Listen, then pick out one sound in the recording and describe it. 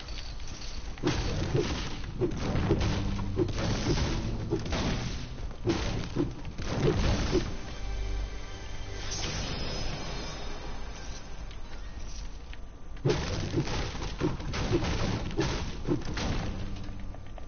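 A pickaxe strikes a wall with repeated heavy thuds.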